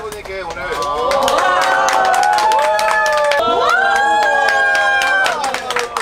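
Men and women cheer and whoop together.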